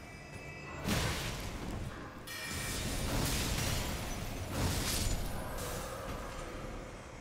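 A sword swings and strikes with sharp clashes.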